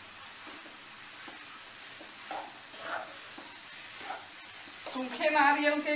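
A spatula scrapes and stirs rice in a pan.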